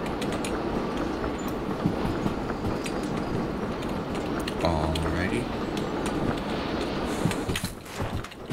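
A steam locomotive rumbles along the rails.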